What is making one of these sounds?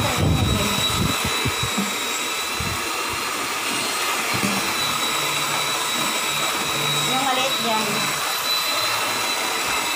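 An electric hand mixer whirs steadily while whisking in a metal bowl.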